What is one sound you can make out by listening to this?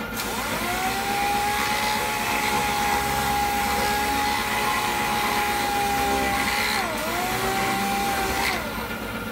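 An air sander whirs steadily against metal, briefly slowing and speeding up again.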